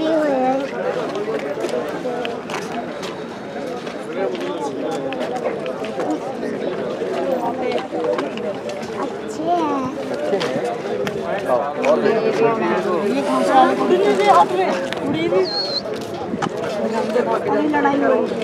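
Many people chatter nearby outdoors.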